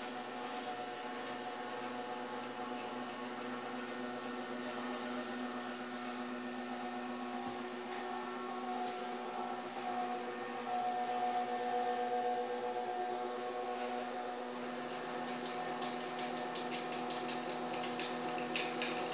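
A robot arm's motors whir steadily as the arm moves.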